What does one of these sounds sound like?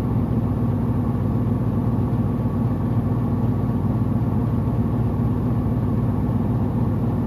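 A washing machine drum hums and rumbles steadily.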